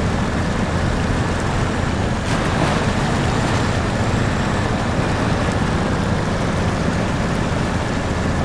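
Water churns and splashes around a truck's wheels.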